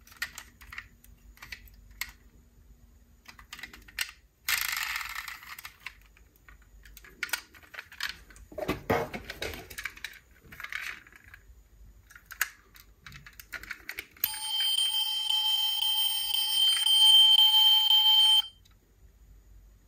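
Small plastic doors click open and shut on toy cars.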